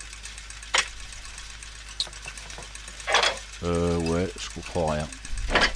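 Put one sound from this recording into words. Metal gears click and clunk as they turn.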